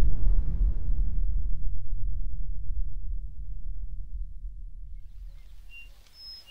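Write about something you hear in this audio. A huge explosion rumbles deeply and slowly fades.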